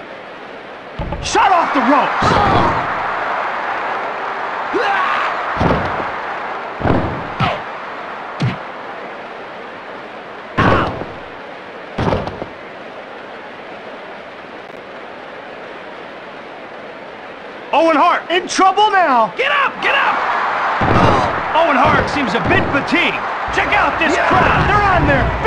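Bodies thud heavily onto a wrestling ring mat, again and again.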